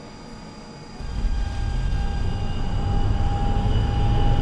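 A tram's electric motor starts up with a low hum and a rising whine as the tram pulls away.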